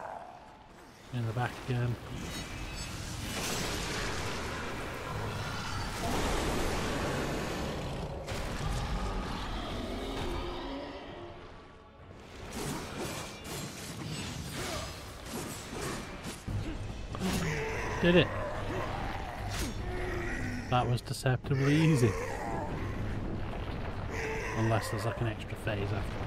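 Video game fight sounds clash and roar.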